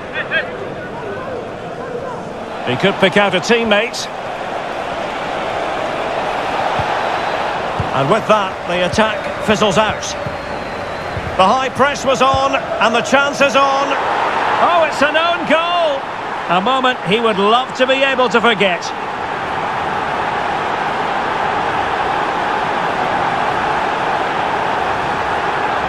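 A stadium crowd roars steadily, swelling after a goal.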